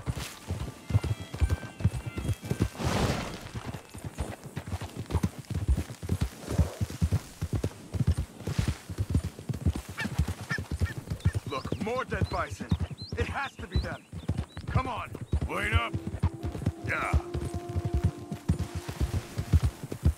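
Horses' hooves pound steadily on grassy ground at a gallop.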